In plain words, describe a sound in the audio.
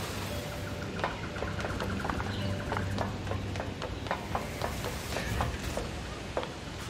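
Quick footsteps clatter on wooden planks.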